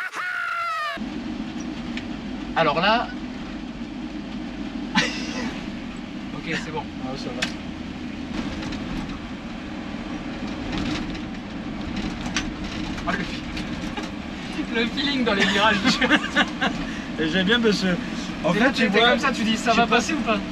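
An old car engine drones steadily inside a cabin.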